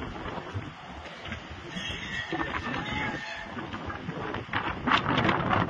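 Wind blows and gusts outdoors.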